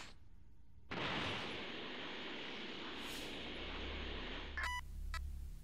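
A rushing whoosh sounds as a game character flies through the air.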